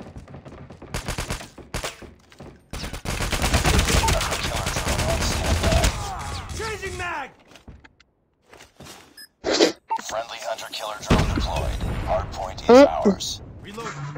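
Gunshots fire in rapid bursts, loud and close.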